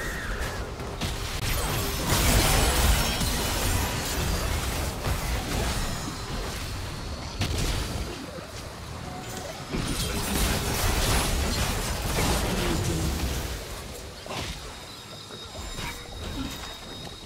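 Game spell effects and combat sounds crackle and burst.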